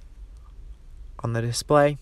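A dial clicks as a hand turns it.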